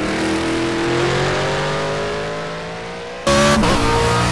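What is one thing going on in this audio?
A racing car engine roars steadily and slowly fades into the distance.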